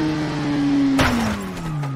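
A motorcycle crashes with a sudden heavy thud.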